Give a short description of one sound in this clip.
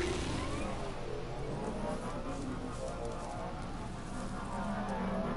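A motorbike engine hums steadily while riding over rough ground.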